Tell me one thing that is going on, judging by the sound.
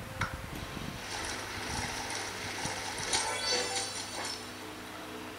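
A cartoon blender whirs and grinds through a small speaker.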